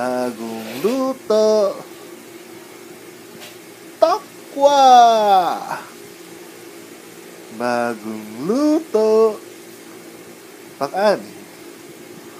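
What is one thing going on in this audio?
A man speaks close by in short, playful bursts, his voice rising and falling in pitch.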